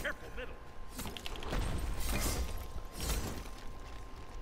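Magic blasts whoosh and crackle in rapid bursts.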